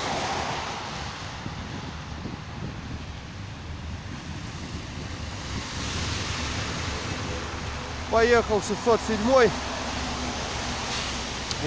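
Heavy trucks rumble past on a wet road.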